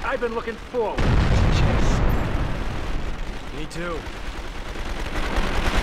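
Gunshots fire rapidly and loudly.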